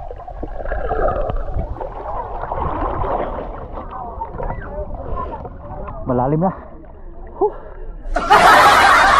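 Water gurgles and bubbles, muffled as if heard underwater.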